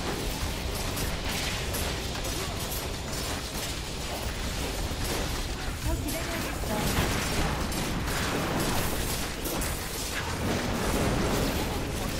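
Magic spells crackle and blast in a game's battle.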